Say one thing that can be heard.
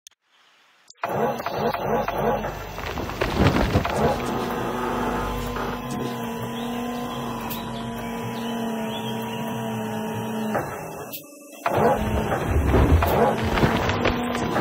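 A heavy excavator engine hums steadily.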